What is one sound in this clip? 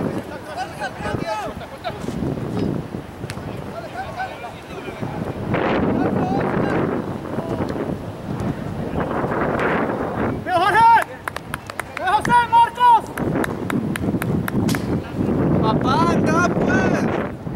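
Young men shout loudly to each other across an open outdoor field.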